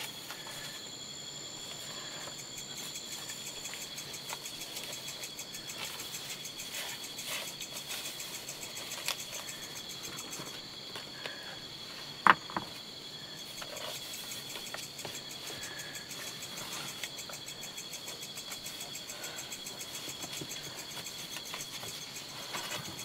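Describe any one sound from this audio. Leaves rustle softly as hands wrap them around a leg.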